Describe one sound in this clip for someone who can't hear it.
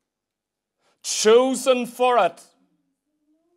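A middle-aged man speaks forcefully into a microphone.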